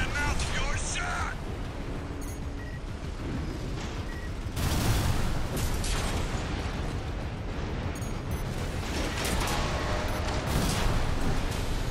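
A giant robot's thrusters roar steadily.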